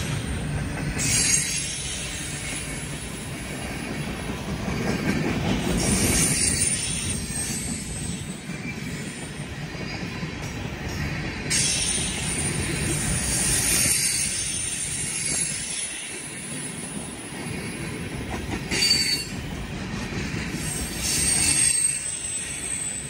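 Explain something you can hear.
Steel wheels clatter and squeal on the rails in bursts.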